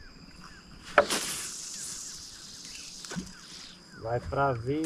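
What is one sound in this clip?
A fishing line whizzes off a reel as a rod is cast.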